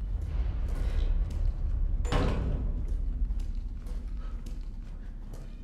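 Footsteps tread slowly on a hard floor.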